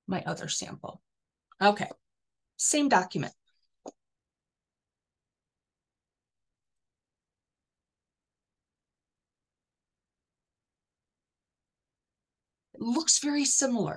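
A woman speaks calmly through an online call microphone, pausing between phrases.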